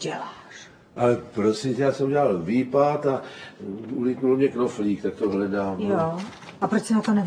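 An elderly man shouts loudly and angrily.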